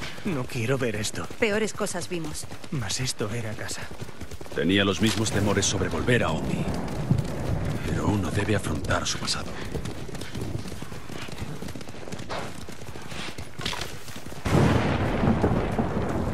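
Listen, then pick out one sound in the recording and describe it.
Horses gallop with pounding hooves.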